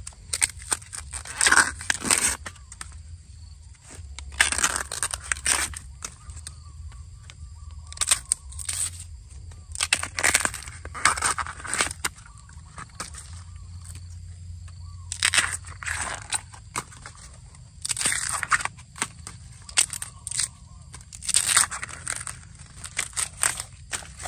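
Bamboo husk rips and tears as hands peel a shoot.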